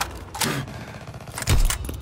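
A shotgun blasts once.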